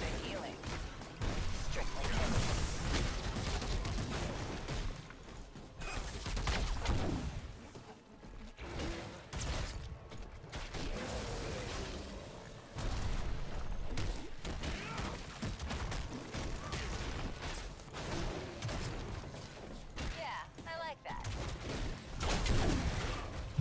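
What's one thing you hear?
Game spell effects and combat blasts crackle and boom.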